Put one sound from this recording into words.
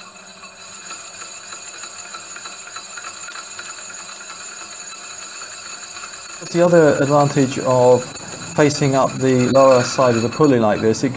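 A lathe motor hums steadily as the chuck spins.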